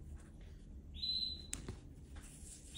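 A paper bag rustles as a hand reaches in.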